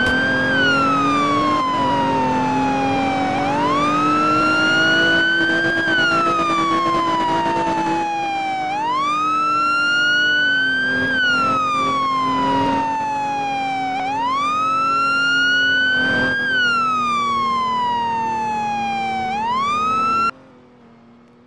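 A police siren wails up and down steadily.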